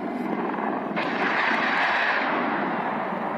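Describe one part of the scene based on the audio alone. Rockets launch with a loud rushing whoosh.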